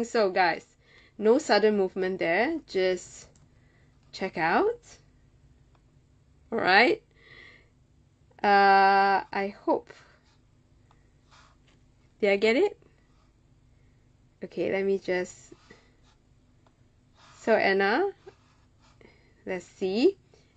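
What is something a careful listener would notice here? A young woman speaks close by in short, animated bursts with pauses between them.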